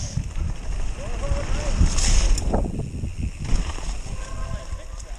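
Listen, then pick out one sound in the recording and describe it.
Leaves crunch under bicycle tyres.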